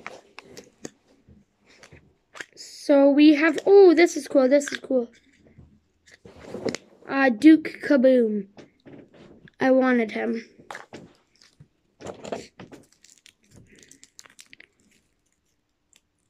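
Small plastic items click and rattle in a boy's hands.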